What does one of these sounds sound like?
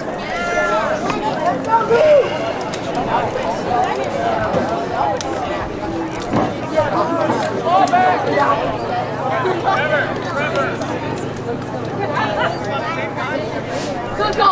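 A crowd of people talks and calls out outdoors, some distance away.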